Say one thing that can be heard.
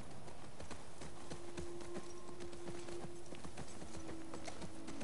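Horse hooves thud steadily at a trot.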